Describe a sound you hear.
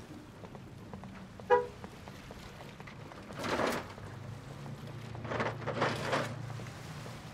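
Footsteps scuff on paving outdoors.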